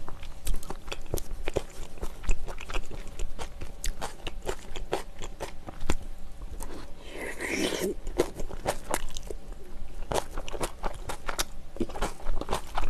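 A young woman chews food loudly, close to a microphone.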